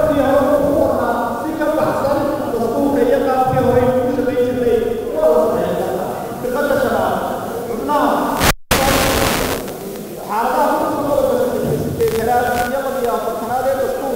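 A man speaks with emphasis into a microphone, heard through loudspeakers.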